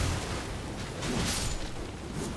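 A blade strikes an enemy with a sharp clash.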